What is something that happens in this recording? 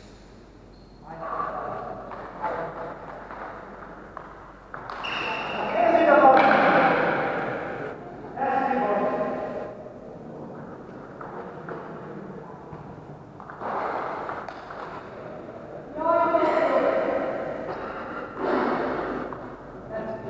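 A young man shouts loudly in an echoing hall.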